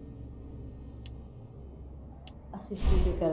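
A game menu cursor clicks as the selection moves.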